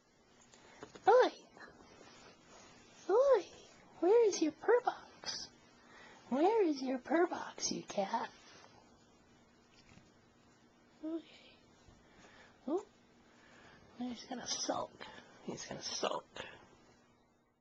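A cat meows repeatedly, close by.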